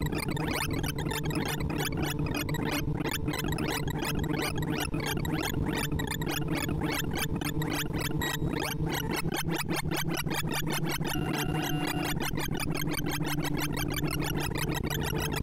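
Rapid electronic beeps chirp in a dense, fast flurry.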